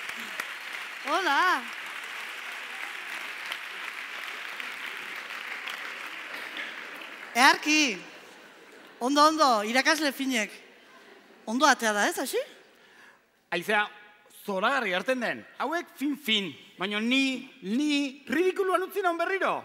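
A woman speaks with animation through a headset microphone.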